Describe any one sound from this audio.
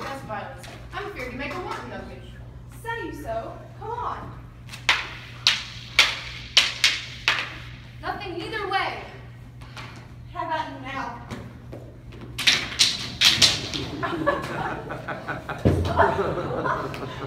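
Young women speak loudly, acting out lines.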